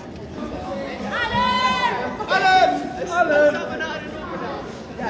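Young women shout excitedly outdoors.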